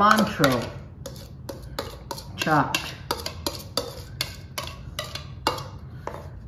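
A spice shaker rattles and taps in quick shakes.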